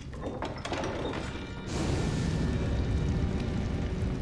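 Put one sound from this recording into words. A heavy stone door grinds open.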